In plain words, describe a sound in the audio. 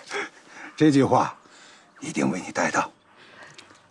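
A man speaks warmly and cheerfully, close by.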